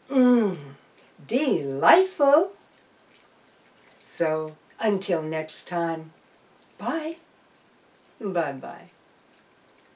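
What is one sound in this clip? A middle-aged woman speaks expressively and close by, in short phrases with pauses.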